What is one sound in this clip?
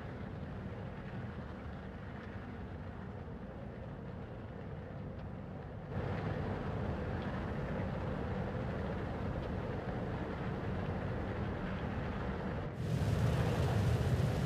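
A spaceship engine hums with a low, steady rumble that grows louder.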